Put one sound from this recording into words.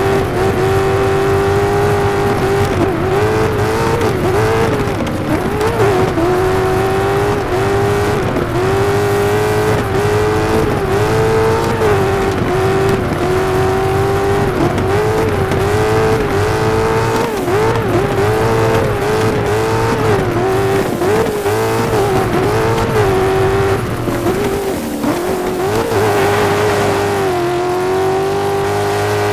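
A racing car engine roars at high revs, rising and dipping as it shifts gears.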